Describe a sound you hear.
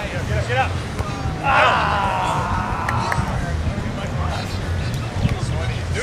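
A volleyball is hit with a dull thump.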